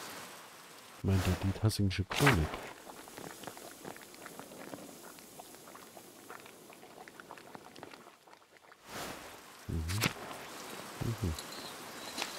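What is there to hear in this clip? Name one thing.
A man speaks casually and close to a microphone, in short bursts.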